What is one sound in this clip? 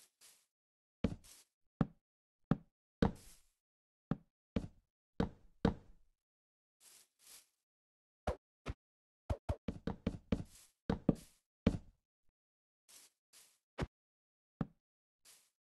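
Wooden blocks knock sharply as they are placed one after another.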